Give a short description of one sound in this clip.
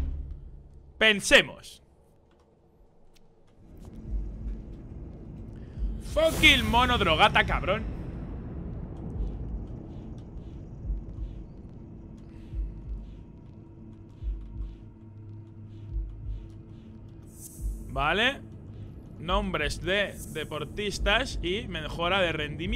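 A young man talks animatedly and laughs close to a microphone.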